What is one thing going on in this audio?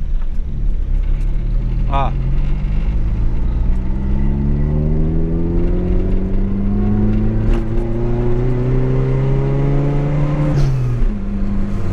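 A car engine revs higher and higher as the car speeds up, then drops suddenly at a gear change.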